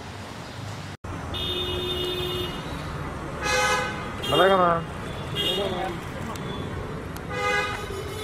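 Traffic hums steadily on a nearby street.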